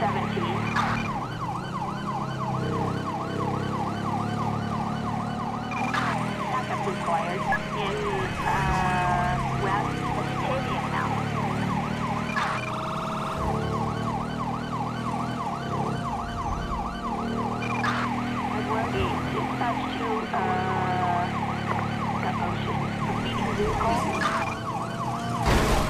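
A police siren yelps rapidly up and down.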